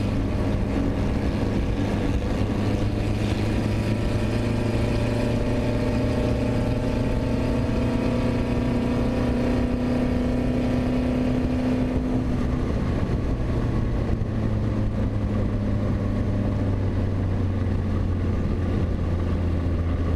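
Wind rushes past in a steady roar.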